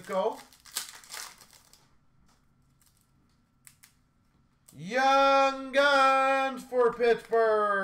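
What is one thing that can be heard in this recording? Card packs rustle and tap as hands sort through them.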